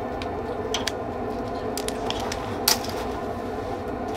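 Small flames crackle as kindling catches fire.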